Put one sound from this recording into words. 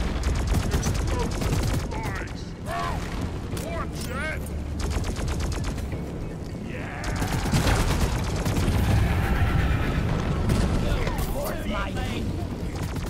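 Creatures screech and shriek.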